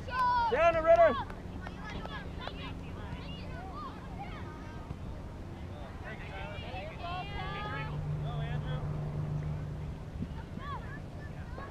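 Soccer players call out to each other far off across an open field.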